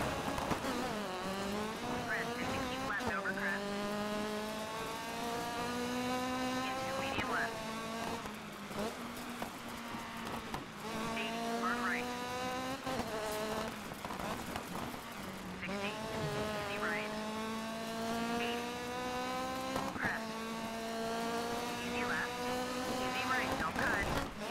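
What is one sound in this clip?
A rally car engine revs hard, rising in pitch through the gears.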